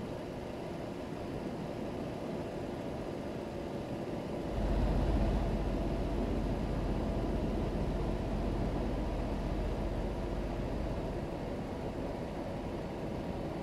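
A truck engine hums steadily, with a deeper rumble growing from midway.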